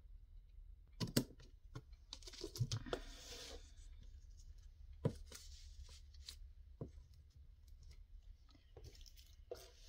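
Paper rustles and crinkles as hands press and smooth it.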